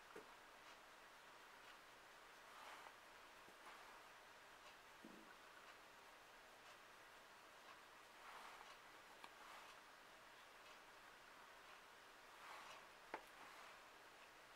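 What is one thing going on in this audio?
A makeup brush softly sweeps across skin.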